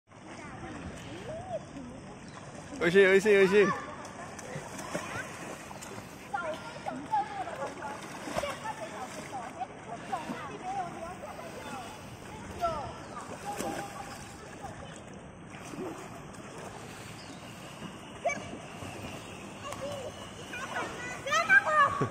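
Water splashes as a young girl kicks in a pool.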